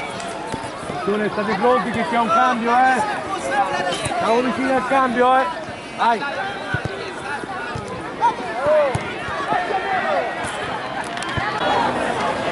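Children shout and call out outdoors while playing football.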